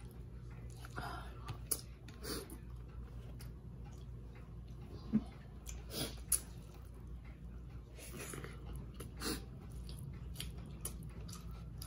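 Fingers squish and mix soft rice on a plate.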